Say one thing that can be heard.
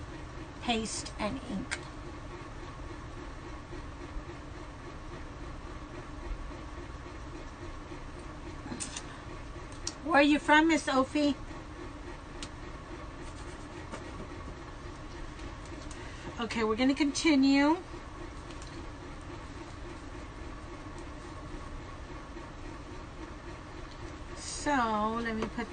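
An older woman speaks close by in short bursts.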